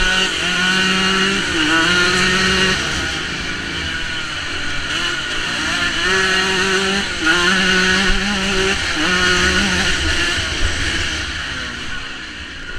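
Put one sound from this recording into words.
A motorcycle engine revs up and down loudly, close by.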